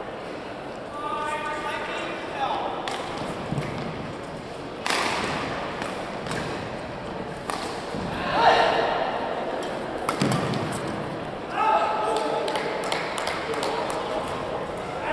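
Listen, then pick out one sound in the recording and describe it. Men call out and chatter in a large echoing hall.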